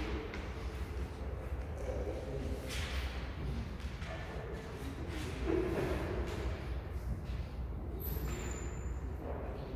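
A brass band plays together in a large echoing hall.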